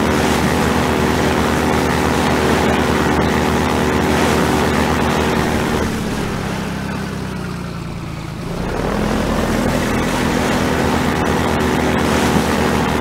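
A boat's engine drones steadily, dipping briefly and rising again.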